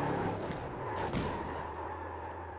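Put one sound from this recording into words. A race car slams and scrapes against a wall.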